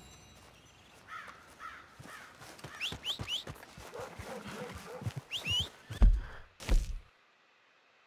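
Footsteps run over grass and dirt outdoors.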